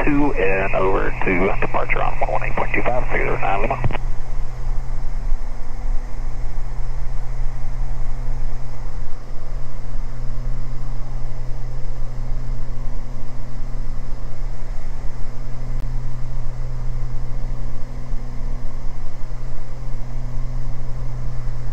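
A twin-engine piston airplane drones steadily in cruise, heard from inside the cabin.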